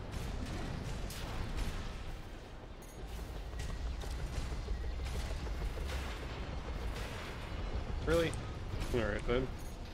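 Video game gunfire and explosions rumble and crack.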